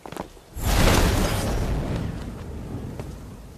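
A magical energy blast whooshes and rumbles.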